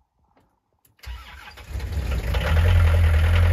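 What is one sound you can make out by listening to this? A diesel engine cranks and sputters into life.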